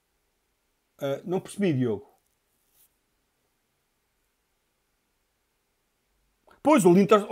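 A man speaks calmly and close to a microphone, in short bursts with pauses.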